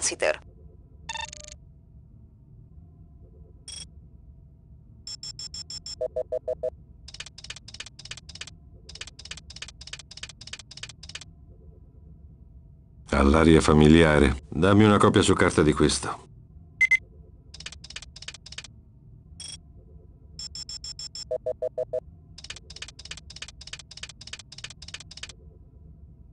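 An electronic device ticks in rapid bursts.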